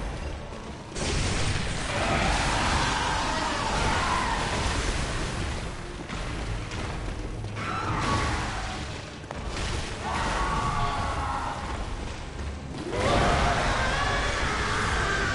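A monstrous beast roars and shrieks.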